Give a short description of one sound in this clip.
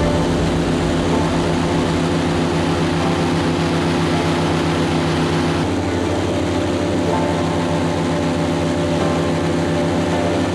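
An airboat's propeller engine roars loudly and steadily.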